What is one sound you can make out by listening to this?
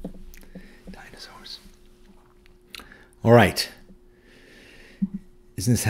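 An older man speaks calmly and close to a microphone, in short phrases with pauses.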